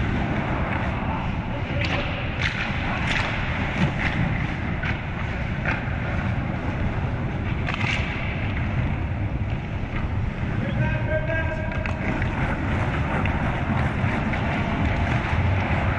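Ice skates scrape and carve across ice in a large echoing rink.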